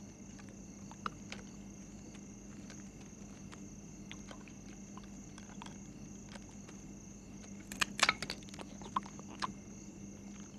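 A glass bottle clinks and scrapes on hard ground.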